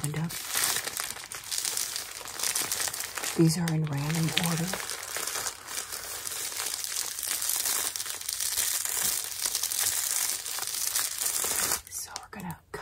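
A plastic mailer crinkles and rustles in hands.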